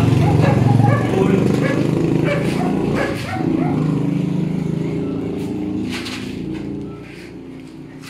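A dog growls low and steadily close by.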